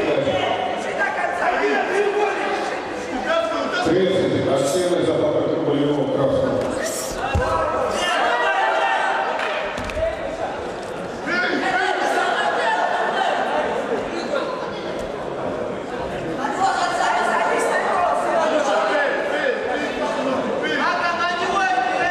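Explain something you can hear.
A crowd of men shouts and cheers loudly in a large echoing hall.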